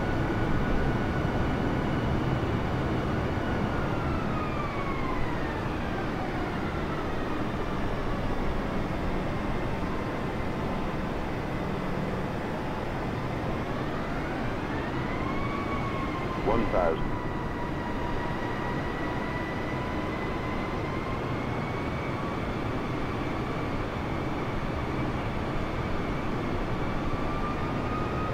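Jet engines roar steadily, whining up and down in pitch.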